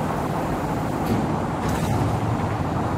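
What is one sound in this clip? Sliding doors close with a soft thud.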